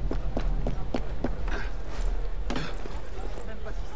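A body lands with a heavy thud on the ground.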